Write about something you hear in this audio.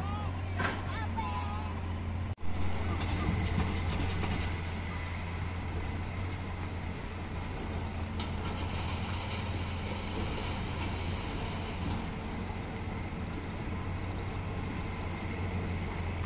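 A river flows and rushes steadily.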